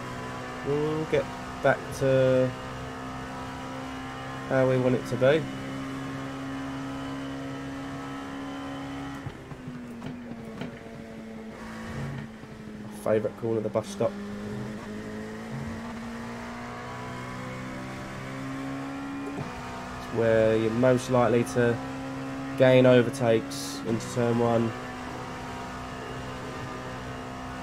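A racing car engine drones steadily at high speed, with its pitch dipping and rising.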